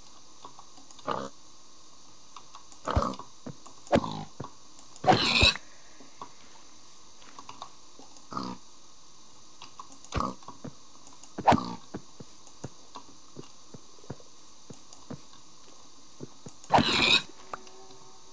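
A pig grunts and squeals in short bursts.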